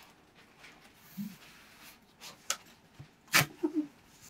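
Packing tape peels off a roll with a sticky rip.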